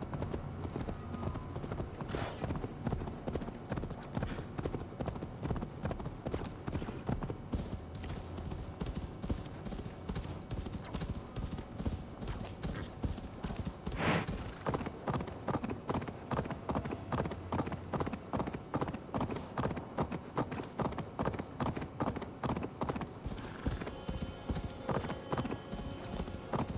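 A horse's hooves crunch steadily through snow.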